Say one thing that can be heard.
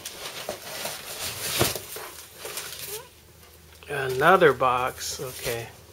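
A cardboard box scrapes and thumps.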